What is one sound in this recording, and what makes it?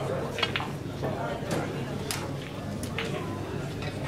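Pool balls clack together on a table.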